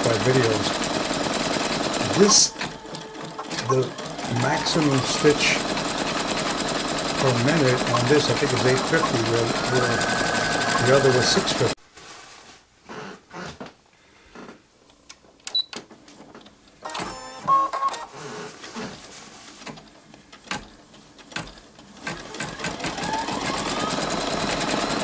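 An embroidery machine hums and whirs as its needle stitches rapidly.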